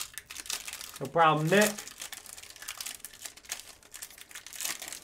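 A foil wrapper crinkles and rustles as it is torn open by hand.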